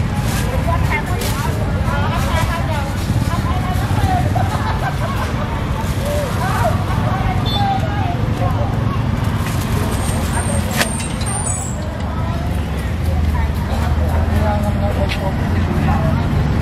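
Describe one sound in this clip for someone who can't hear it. Adult men and women chatter nearby in a busy crowd.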